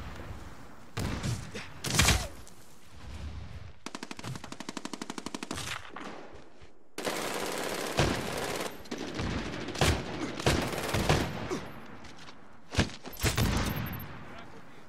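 A shotgun fires loud single blasts.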